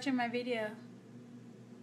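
A woman speaks briefly, close to the microphone.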